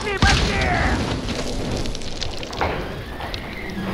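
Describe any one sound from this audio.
A fire crackles and roars on a burning wreck.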